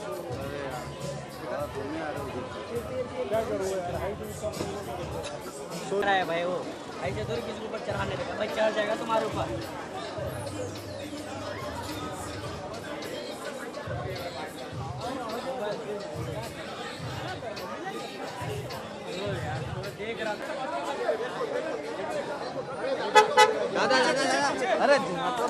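A crowd of men shout and call out close by.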